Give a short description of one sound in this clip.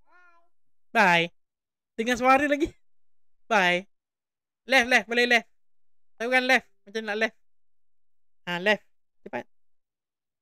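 A young child recites slowly in short phrases over an online call.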